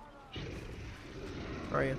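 A wolf growls close by.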